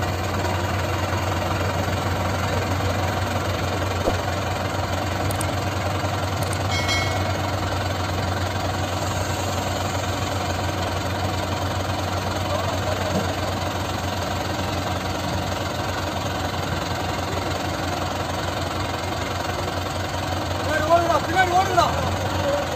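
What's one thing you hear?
A tractor engine idles with a steady, low chugging throb.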